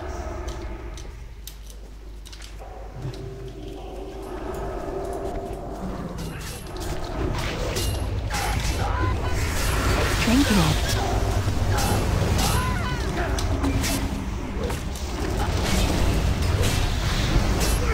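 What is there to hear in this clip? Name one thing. Weapon hits and magic blasts clash in a fight.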